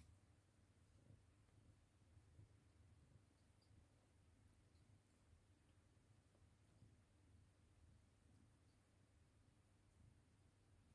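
A mother cat purrs softly.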